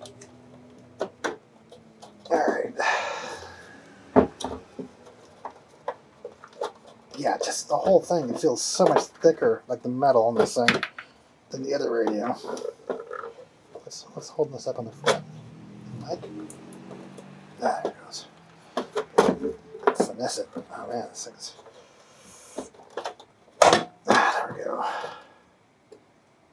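A metal radio case knocks and clatters as it is turned over.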